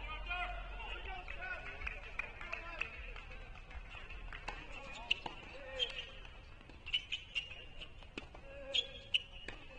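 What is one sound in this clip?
Several people talk casually at a distance outdoors.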